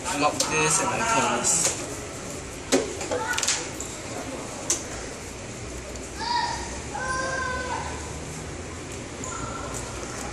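Card sleeves rustle as a deck is shuffled.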